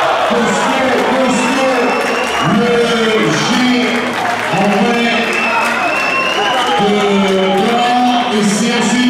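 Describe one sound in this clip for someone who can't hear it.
Young men cheer and chant together in a large echoing hall.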